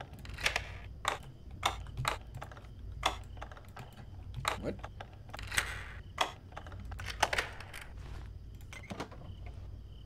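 Metal lock picks click and scrape in a lock.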